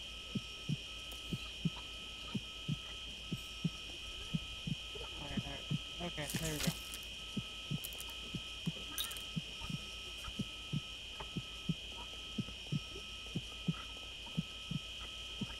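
A heart monitor beeps steadily.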